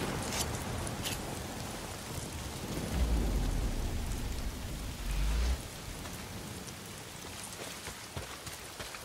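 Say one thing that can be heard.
Footsteps crunch over grass and wet ground.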